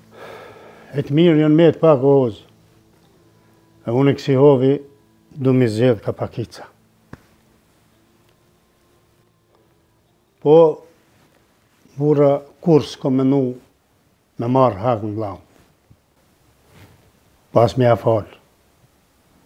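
An elderly man speaks calmly nearby in short phrases.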